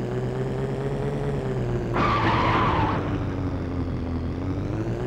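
A racing car engine drones steadily, its pitch slowly dropping as the car slows.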